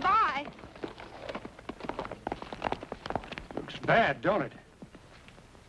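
A man speaks loudly and emphatically nearby.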